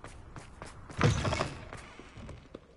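A heavy door opens with a loud thud.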